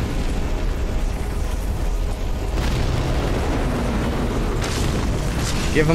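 Flames roar in a deep rumble.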